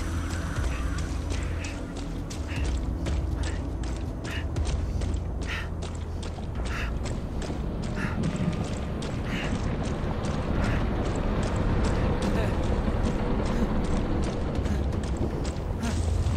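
Footsteps crunch steadily over loose gravel and rock.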